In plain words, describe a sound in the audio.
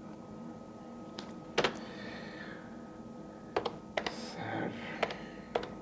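Computer keys click as a young man types.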